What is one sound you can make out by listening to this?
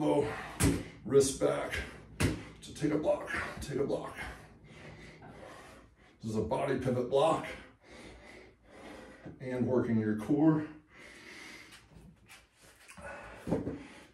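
A man speaks calmly close by, as if instructing.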